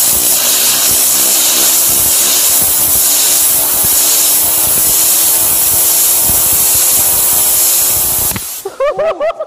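Compressed air blasts loudly from a hose nozzle with a strong hiss.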